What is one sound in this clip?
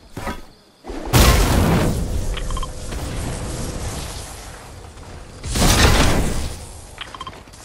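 A loud rushing whoosh sweeps past as a figure is flung into the air.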